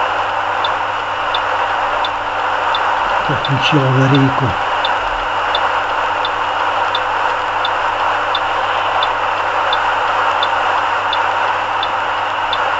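Tyres rumble steadily on a snowy road.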